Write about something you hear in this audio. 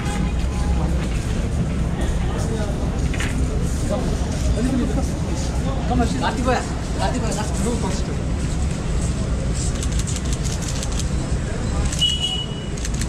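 A crowd of men chatter and call out nearby outdoors.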